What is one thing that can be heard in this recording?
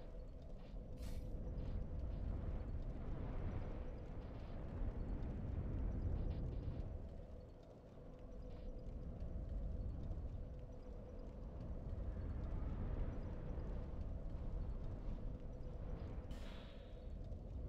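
A short game menu chime sounds.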